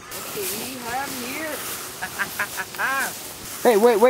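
Footsteps swish through tall grass.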